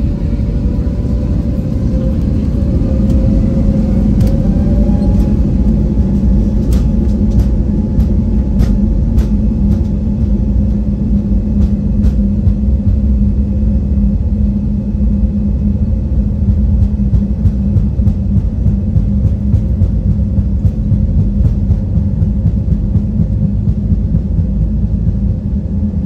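A jet engine roars loudly and steadily from inside a plane cabin.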